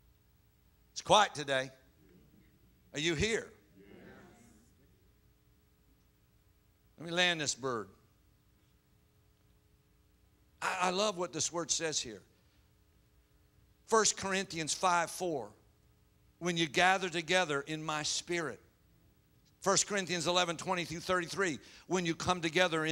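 A middle-aged man speaks into a microphone in bursts with pauses, heard through a loudspeaker.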